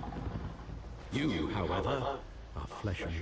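A man answers in a deep, low voice.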